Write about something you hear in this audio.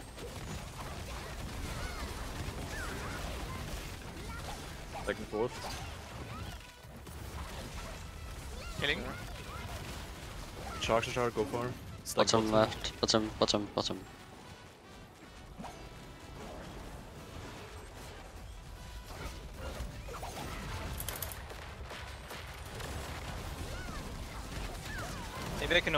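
Magic blasts and heavy impacts crash and boom in a fantasy battle.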